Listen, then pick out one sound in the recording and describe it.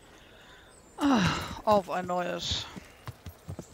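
A horse whinnies loudly.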